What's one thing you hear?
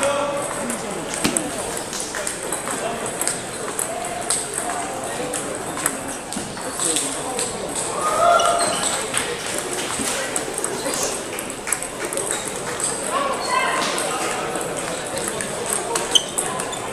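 Table tennis balls bounce on tables.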